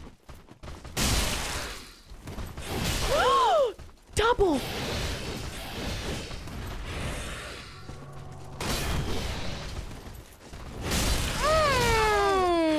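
Sword blows slash and strike with heavy thuds.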